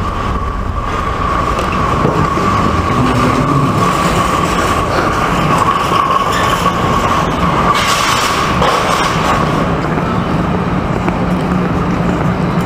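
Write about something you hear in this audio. A steady murmur of people fills a large echoing hall.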